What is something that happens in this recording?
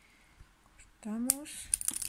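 Scissors snip through thread close by.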